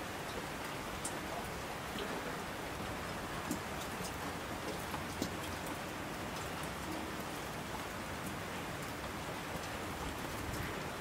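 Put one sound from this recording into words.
Water rushes down in torrents.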